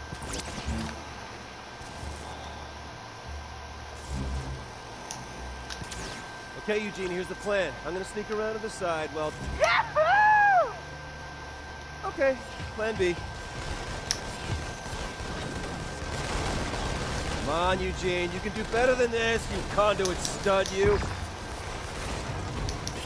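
Electric energy crackles and whooshes.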